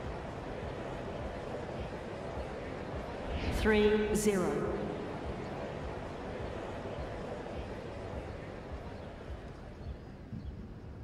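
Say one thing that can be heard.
A large crowd murmurs in a big arena.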